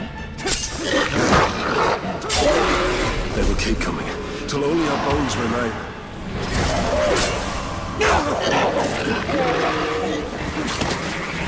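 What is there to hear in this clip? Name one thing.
Creatures snarl and screech in rapid bursts.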